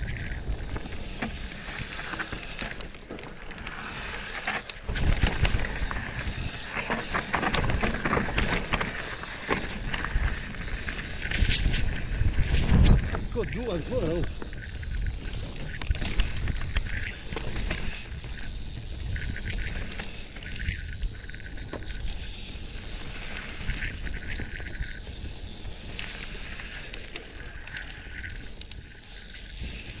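Wind rushes past a moving rider.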